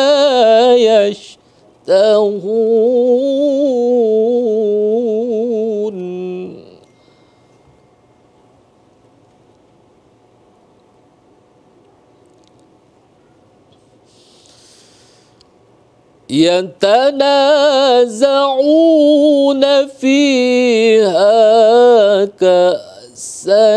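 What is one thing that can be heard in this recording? A man chants a recitation in a melodic voice through a microphone, pausing between phrases.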